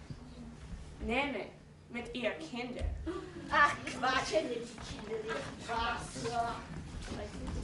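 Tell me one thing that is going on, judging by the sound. A young man speaks loudly on a stage with a slight echo.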